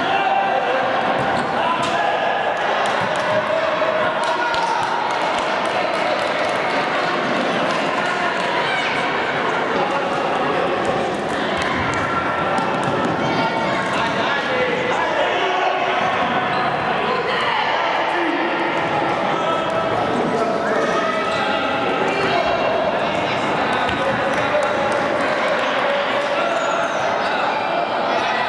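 A crowd of young spectators shouts and cheers, echoing in a large hall.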